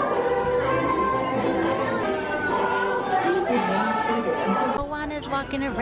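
Cheerful music with singing voices plays from loudspeakers.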